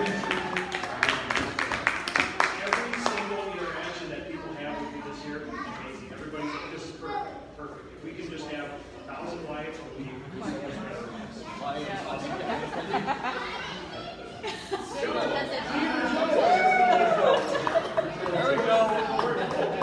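A crowd of people chatters all around in a busy room.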